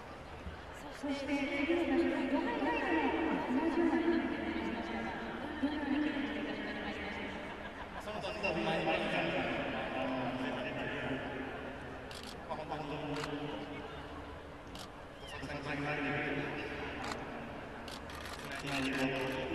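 A young man speaks into a microphone up close, calmly and cheerfully.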